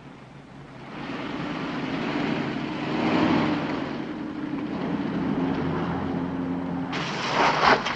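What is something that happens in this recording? A car engine hums as a car pulls away and drives off.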